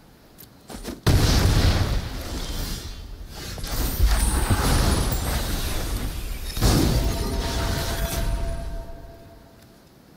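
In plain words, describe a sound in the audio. A burst of magical game sound effects swells and then fades.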